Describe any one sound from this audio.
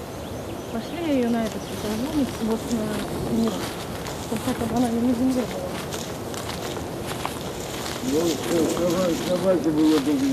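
A woman speaks calmly outdoors.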